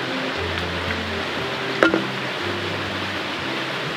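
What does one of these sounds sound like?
Beer fizzes as it is poured into a metal mug.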